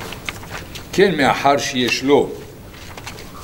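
An elderly man speaks briefly in a low voice.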